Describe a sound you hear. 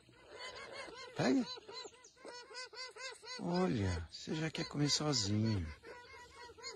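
Toucans croak in quick, repeated rasping calls close by.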